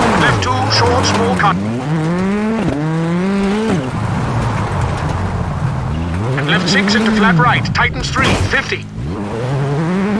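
Tyres spray and crunch over loose gravel.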